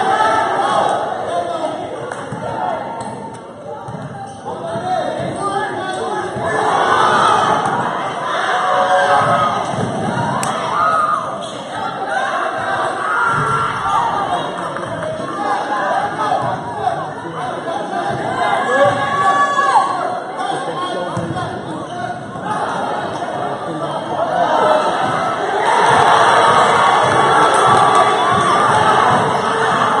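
Basketball shoes squeak on the court.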